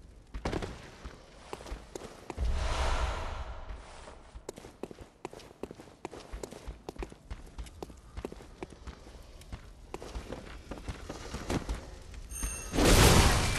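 Footsteps thud on stone and wooden floors.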